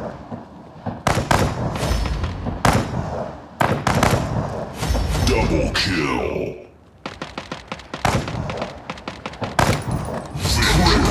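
A rifle fires in bursts.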